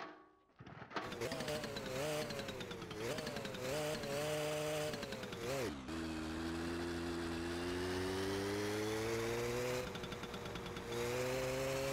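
A small motorbike engine idles and revs, then rides off with a steady drone.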